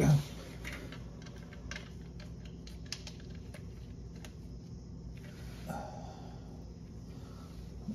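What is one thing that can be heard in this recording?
A metal bolt clicks faintly as it is turned by hand.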